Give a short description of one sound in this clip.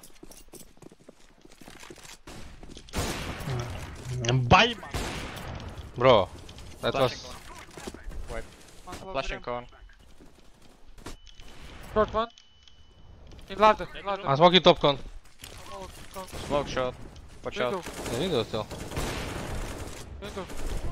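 Gunshots crack from a game.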